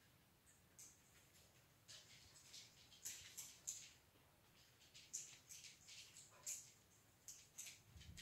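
A small dog's claws click on the floor.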